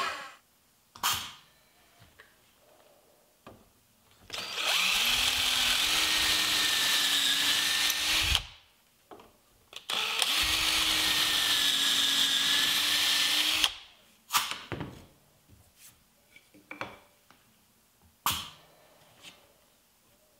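Wood and metal pieces knock and clack together.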